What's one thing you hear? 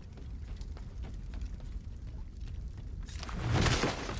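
Footsteps thud quickly on wooden stairs.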